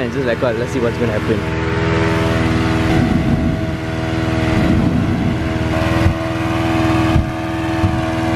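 An engine-driven fan drones steadily.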